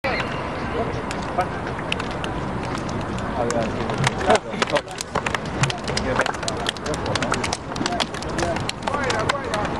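Players' hands slap together in quick handshakes.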